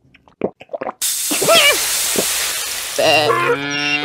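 Water sprays out in a loud rushing gush.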